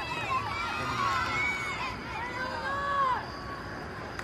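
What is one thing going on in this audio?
Young women shout to each other across an open field in the distance.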